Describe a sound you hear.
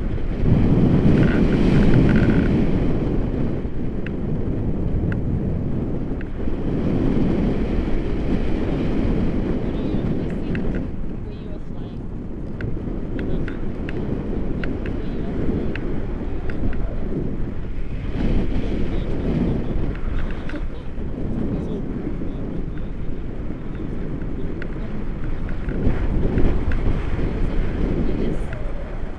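Wind rushes past during a paraglider flight and buffets a microphone.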